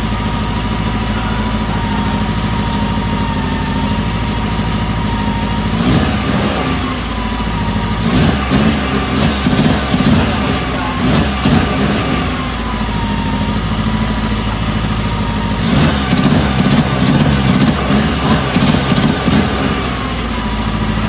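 A car engine idles steadily close by.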